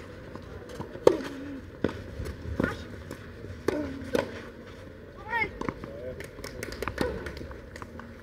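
Tennis balls are struck with sharp pops of rackets.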